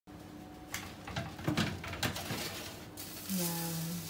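A metal oven tray scrapes and rattles.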